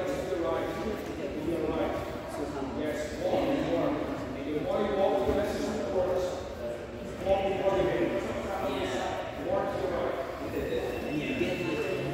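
A man talks calmly nearby in a large echoing hall.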